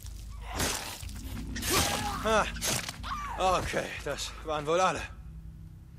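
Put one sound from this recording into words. Blows land with heavy thuds.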